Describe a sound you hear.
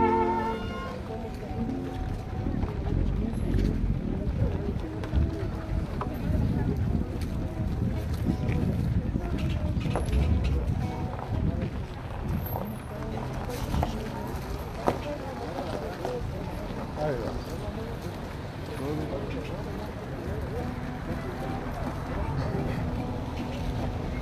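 Acoustic guitars strum outdoors.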